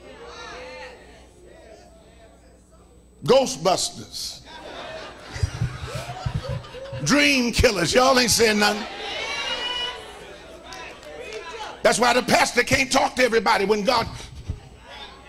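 A middle-aged man preaches with animation into a microphone.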